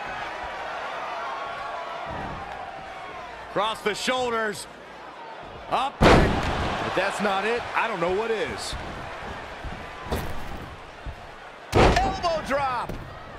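An arena crowd murmurs and cheers.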